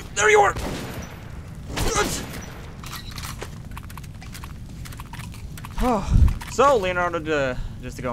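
A gun fires single loud shots.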